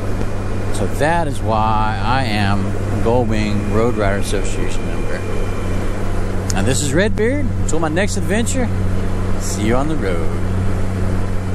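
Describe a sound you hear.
A man talks calmly through a helmet microphone.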